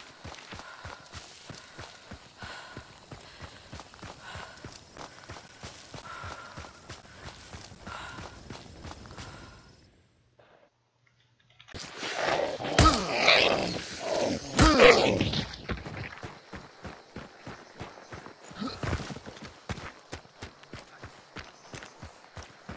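Footsteps crunch steadily over dry ground.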